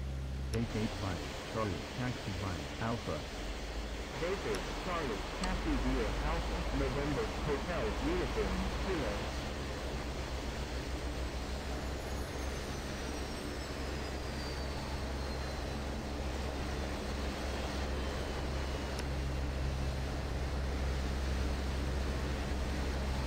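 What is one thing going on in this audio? A jet engine hums steadily as an airliner taxis.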